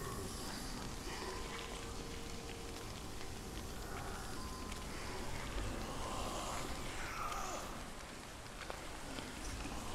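A small fire crackles softly.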